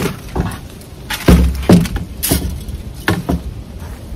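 A plastic rake clatters against a wooden wall.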